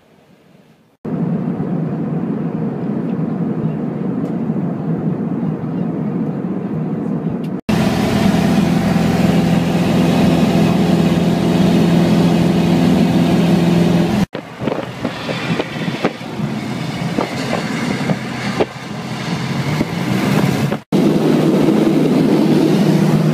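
A small propeller plane's engine drones loudly and steadily from inside the cabin.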